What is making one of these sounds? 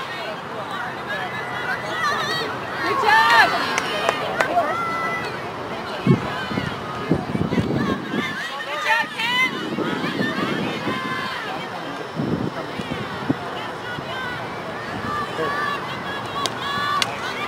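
Hockey sticks clack against a ball.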